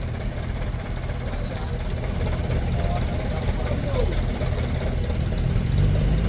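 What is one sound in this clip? A heavy truck engine rumbles low and steadily close by.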